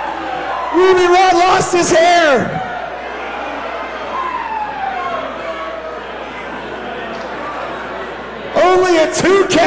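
A crowd murmurs in a large echoing hall.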